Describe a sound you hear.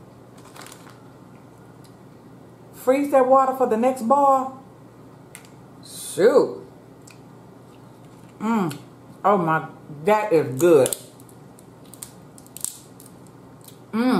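Crab shells crack and snap in hands close to a microphone.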